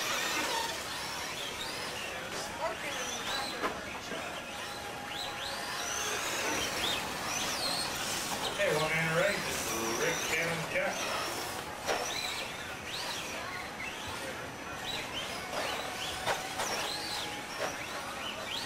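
Small electric motors of radio-controlled cars whine, rising and falling in pitch.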